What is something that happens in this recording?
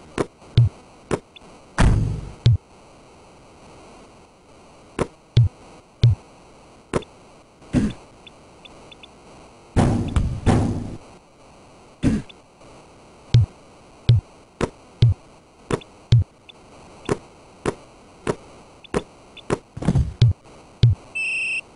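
A basketball bounces on a court again and again with sharp thuds.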